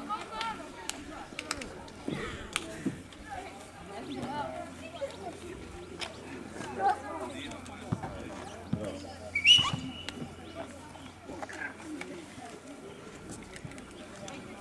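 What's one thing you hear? Boys shout and call to one another across an open field outdoors.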